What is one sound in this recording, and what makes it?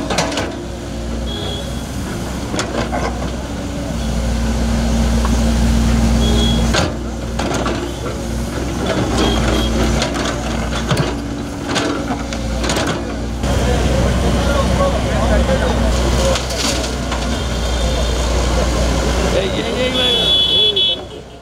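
A diesel excavator engine rumbles steadily nearby.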